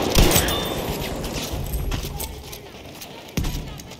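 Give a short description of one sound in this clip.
A pump-action shotgun is racked with a metallic clack.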